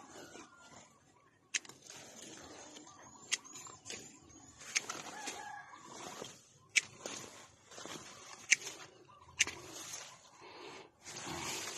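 Leaves rustle as branches are pushed aside.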